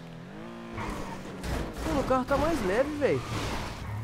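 Tyres screech as a car skids and crashes.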